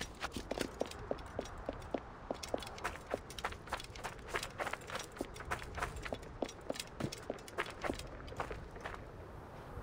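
Footsteps crunch quickly on dry sand and gravel.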